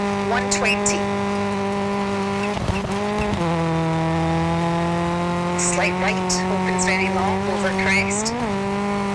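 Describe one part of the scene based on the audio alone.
Gravel crunches and sprays under a car's tyres.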